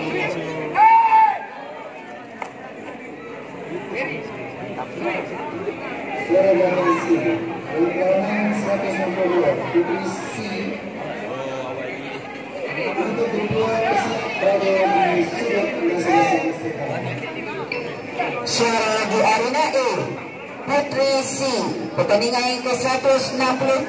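A crowd of men and women chatters and calls out in a large echoing hall.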